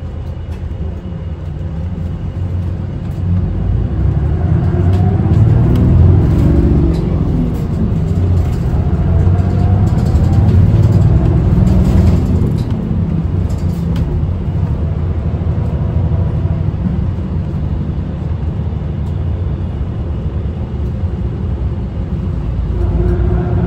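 Tyres hum on the road as a bus rolls along.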